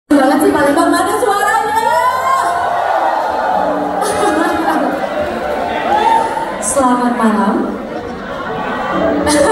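A young woman sings into a microphone over a loudspeaker system.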